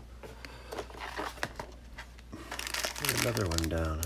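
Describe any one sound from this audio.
A plastic drawer slides and rattles.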